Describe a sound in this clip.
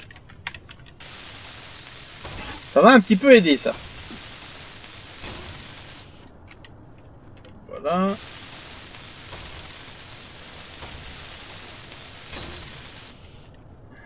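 A welding torch hisses and crackles in bursts.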